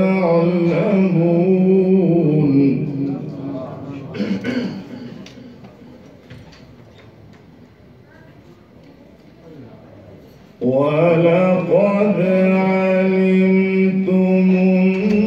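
A man chants in a long, drawn-out melody into a microphone, heard through loudspeakers.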